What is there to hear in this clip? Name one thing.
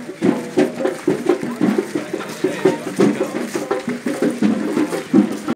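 A group of people sing together close by, outdoors.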